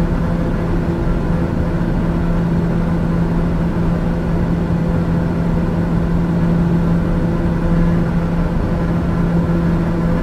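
Air rushes steadily past the aircraft.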